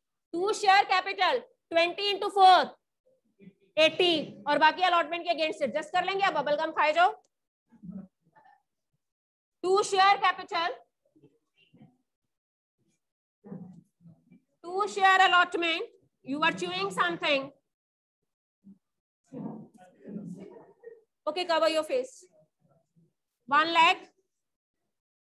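A woman speaks calmly and clearly through a microphone, explaining in bursts with pauses.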